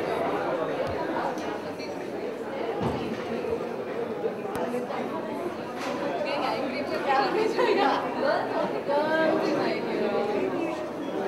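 A woman talks and laughs softly close by.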